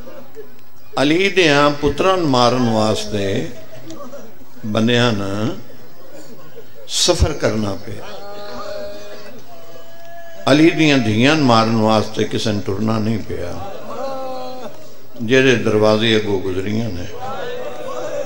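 A middle-aged man speaks with passion through a microphone and loudspeakers, in bursts.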